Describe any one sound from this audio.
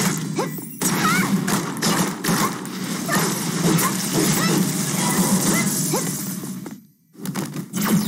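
Fiery blasts and explosions crackle and boom in quick succession.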